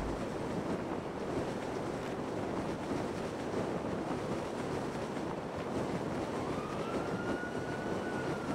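Wind rushes steadily past a parachute gliding through the air.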